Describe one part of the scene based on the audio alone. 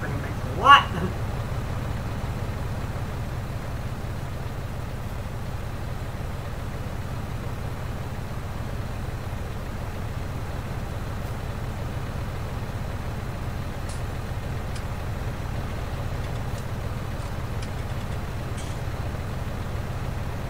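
An engine idles with a low, steady hum.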